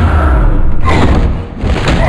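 A heavy blow thuds into a body.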